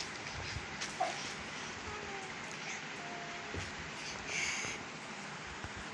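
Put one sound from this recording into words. A toddler giggles softly close by.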